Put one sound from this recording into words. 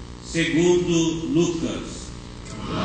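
A boy sings a short phrase into a microphone in an echoing room.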